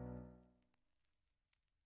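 An acoustic guitar chord rings out and quickly fades.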